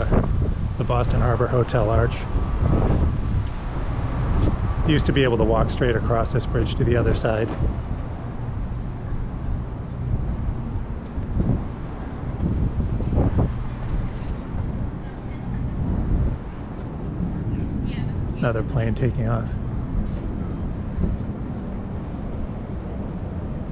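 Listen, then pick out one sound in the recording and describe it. Wind rumbles steadily outdoors by the water.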